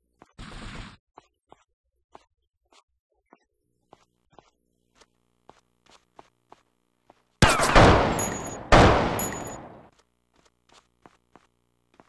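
Footsteps tap quickly on the floor.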